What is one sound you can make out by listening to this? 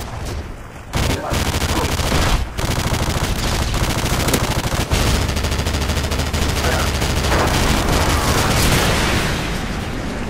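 A heavy cannon fires bursts.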